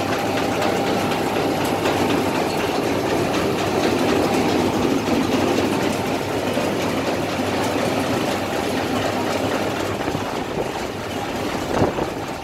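Sorting machinery hums and rattles steadily nearby.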